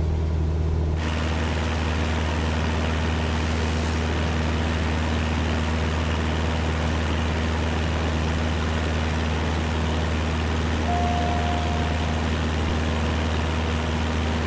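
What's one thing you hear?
Wind rushes past a small plane in flight.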